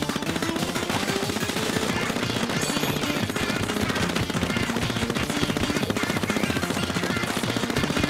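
Upbeat game music plays with a fast beat.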